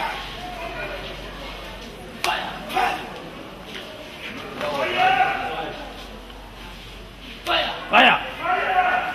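A man prays loudly and forcefully, shouting in bursts.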